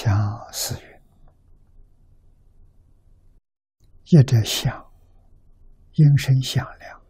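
An elderly man speaks calmly and slowly in short phrases, close to a microphone.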